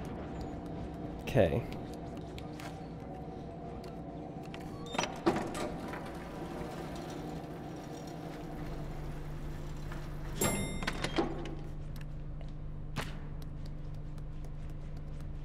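Small footsteps patter across a tiled floor.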